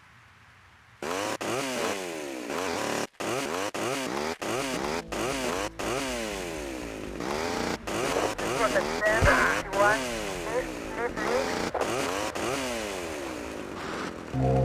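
A chainsaw revs up and down loudly.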